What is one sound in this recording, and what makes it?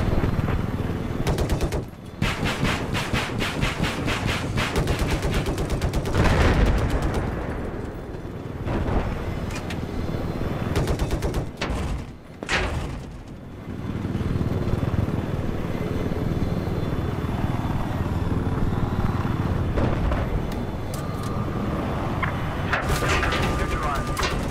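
A helicopter's rotor thumps and its engine roars steadily.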